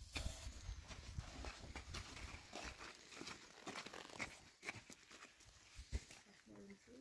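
Footsteps crunch on gravel and dry ground.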